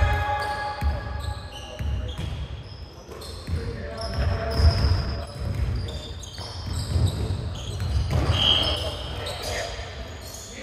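Players' footsteps thud on a wooden court in an echoing hall.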